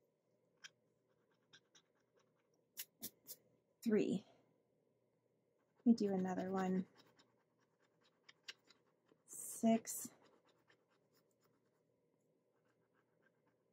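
A coin scrapes lightly across a card in short strokes.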